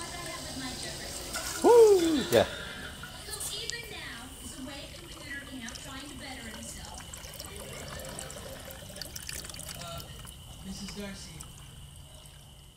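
Water churns and bubbles in a coolant reservoir.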